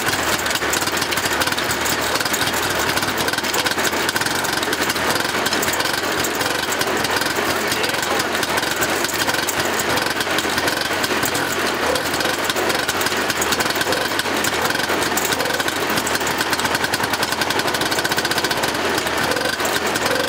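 A small two-stroke engine runs loudly nearby with a fast, rattling idle.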